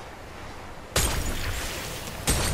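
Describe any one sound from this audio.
Gunshots ring out in short, sharp bursts.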